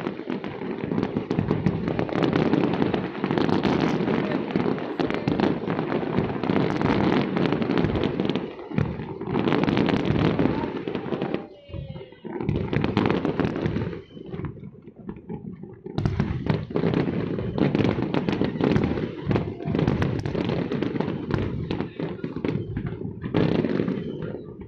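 Fireworks crackle and boom in rapid bursts outdoors.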